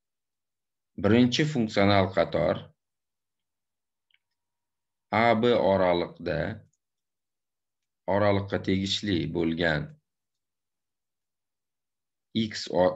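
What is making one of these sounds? A man speaks calmly into a microphone over an online call, in short phrases with pauses.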